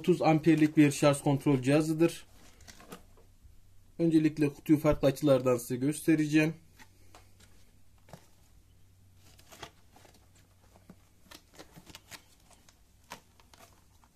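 A cardboard box rustles and taps as it is turned in the hands.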